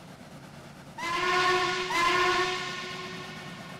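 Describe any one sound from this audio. A steam locomotive whistle blows twice in the distance.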